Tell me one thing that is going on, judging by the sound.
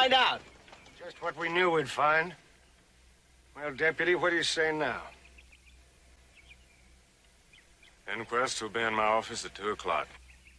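A man speaks firmly nearby.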